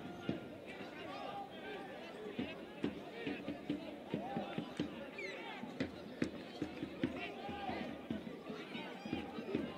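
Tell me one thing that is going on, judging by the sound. Male players shout to each other across a field.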